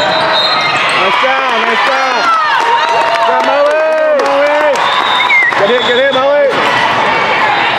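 Young female players shout and cheer together.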